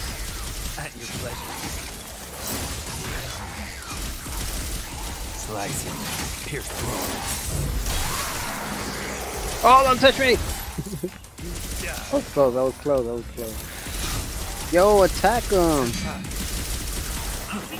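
Blades slash and clang in a fast fight.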